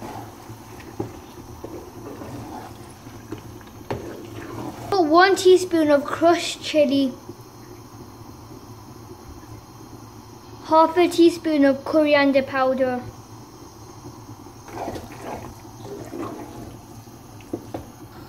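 A wooden spoon scrapes and stirs food in a pot.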